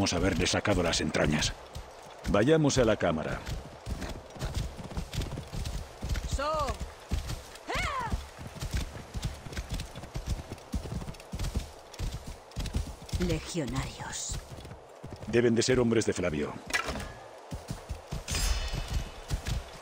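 A horse gallops with quick, heavy hoofbeats on a dirt path.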